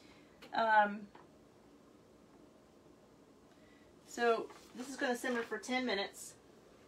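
A woman reads aloud calmly, close by.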